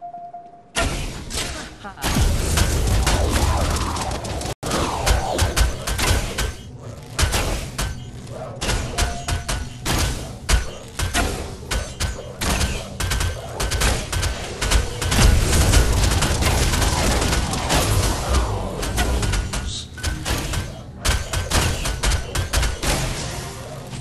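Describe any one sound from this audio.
Game weapons fire in rapid bursts of cracks and blasts.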